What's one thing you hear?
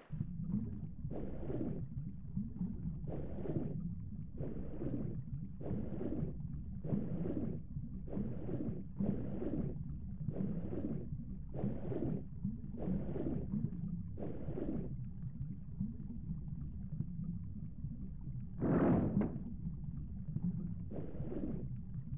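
Swimming strokes push through water in a steady rhythm.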